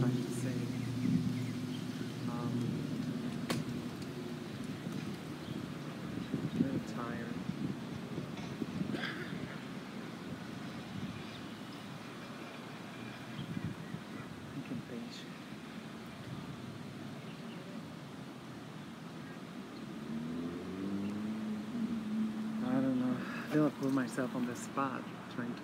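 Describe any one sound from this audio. A middle-aged woman talks calmly close by, outdoors.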